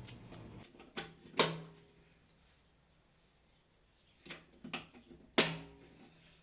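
Plastic parts click sharply as they are pressed into place.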